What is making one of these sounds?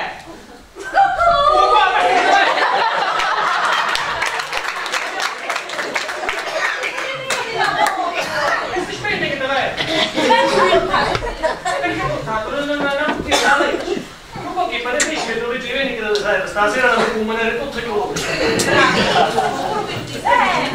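A woman speaks with animation on a stage, heard from the audience.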